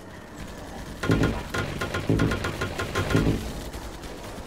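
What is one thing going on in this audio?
Building pieces thud and clatter into place in quick succession.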